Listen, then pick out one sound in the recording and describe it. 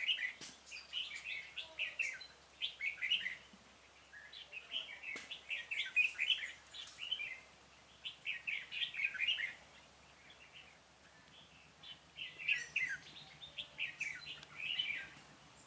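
Birds chirp and twitter in quick bursts close by.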